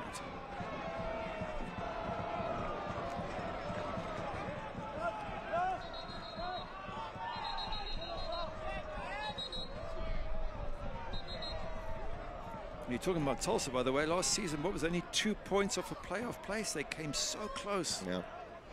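A crowd murmurs and chants in a large stadium.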